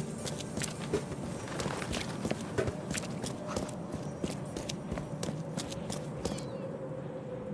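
Footsteps run on cobblestones.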